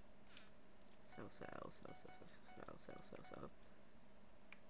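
Short game clicks sound in quick succession.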